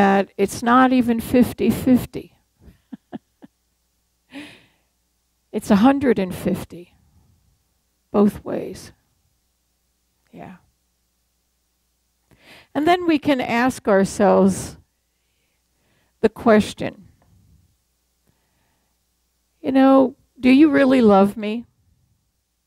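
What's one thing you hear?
An elderly woman speaks with feeling into a microphone, in short phrases with pauses.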